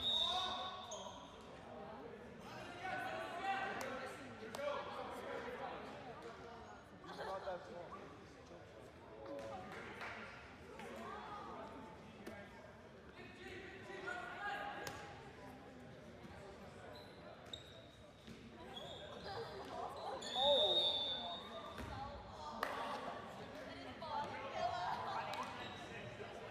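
Young men shout and call to each other across a large echoing gym.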